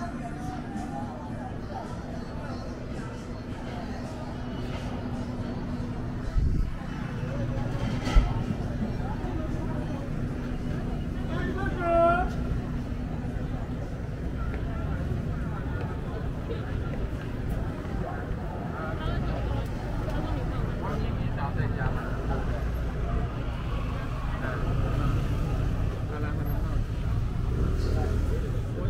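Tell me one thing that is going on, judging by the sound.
A crowd chatters all around on a busy street.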